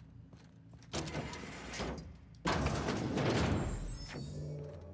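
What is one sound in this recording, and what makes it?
A heavy metal door slides open with a rumbling whoosh.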